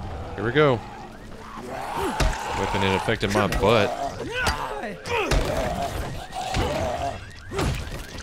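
A man snarls and groans as he charges.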